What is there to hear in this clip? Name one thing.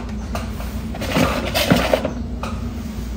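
Plastic rustles and scrapes as parts are handled.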